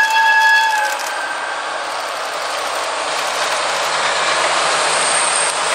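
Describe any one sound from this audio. Train wheels clatter and roll on the rails close by.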